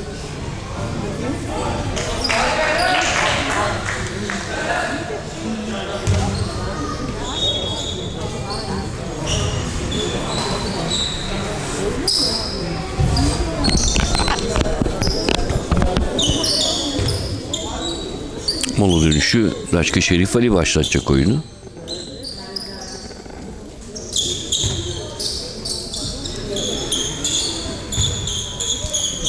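Spectators murmur and chatter in the background.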